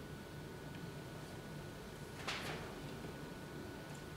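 Paper rustles as a page is handled.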